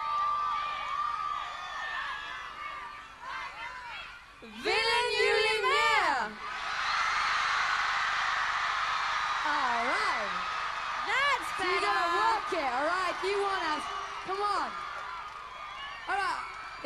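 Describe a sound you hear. A large crowd cheers and screams in a huge echoing arena.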